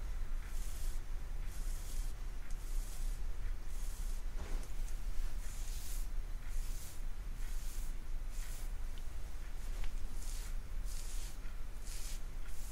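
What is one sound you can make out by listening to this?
Hands rub and brush through hair close by.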